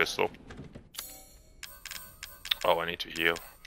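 Soft electronic clicks and chimes sound.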